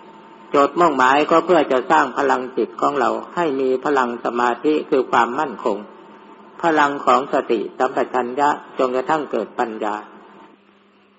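An elderly man speaks calmly and steadily.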